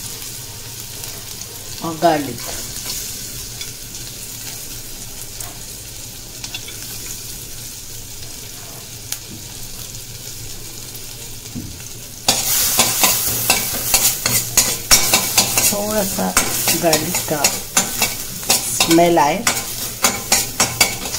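Oil sizzles and crackles in a pan.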